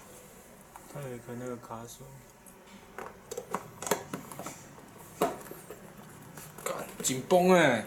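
A plastic wiring connector clicks and rattles as it is handled.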